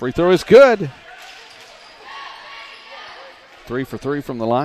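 A crowd in a gym cheers.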